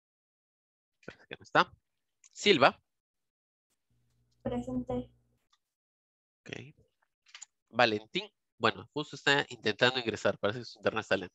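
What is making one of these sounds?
A person speaks calmly over an online call, in short bursts with pauses.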